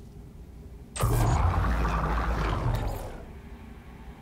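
A machine whirs and hums loudly as it starts running, then fades.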